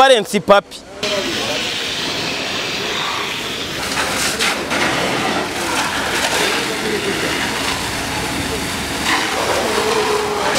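A fire hose sprays water with a steady hiss.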